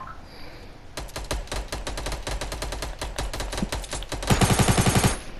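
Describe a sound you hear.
Wooden walls are built with rapid clacking knocks.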